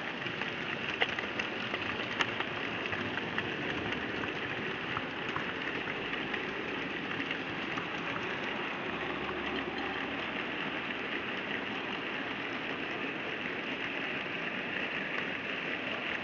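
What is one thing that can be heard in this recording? Model train wheels click sharply over rail joints.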